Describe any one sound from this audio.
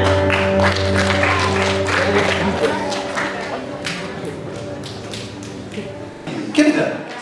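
A band plays music with guitars and keyboard in an echoing hall, then fades out.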